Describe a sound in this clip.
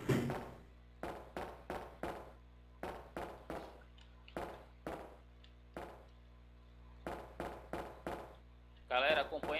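Footsteps ring out evenly on a hard metal floor.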